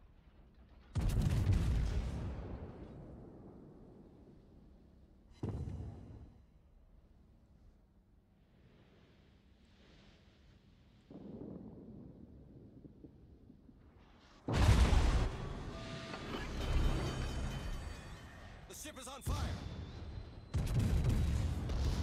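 Heavy naval guns fire in loud booming blasts that rumble away.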